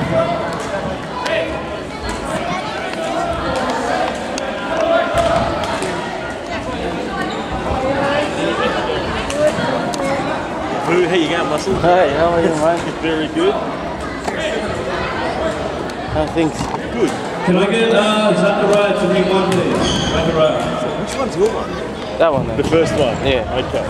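Many children and adults chatter throughout a large echoing hall.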